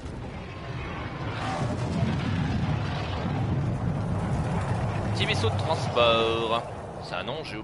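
A spacecraft engine roars low and steady as it flies overhead.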